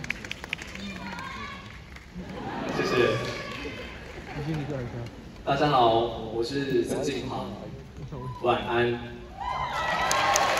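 A man speaks through loudspeakers in a large echoing hall.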